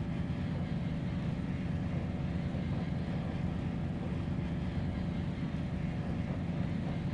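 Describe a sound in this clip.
Racing car engines idle with a low, steady rumble.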